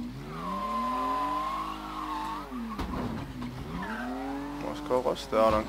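A car engine revs and idles, then slows to a stop.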